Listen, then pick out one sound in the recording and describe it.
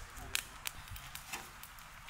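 A fire crackles under a pot.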